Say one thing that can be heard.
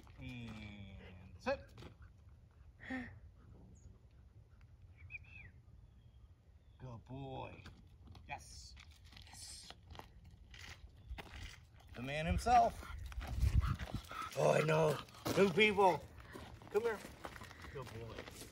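Boots crunch on gravel as a man and a dog walk.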